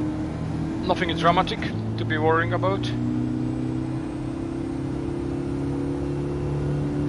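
A car engine hums steadily and rises in pitch as the car speeds up.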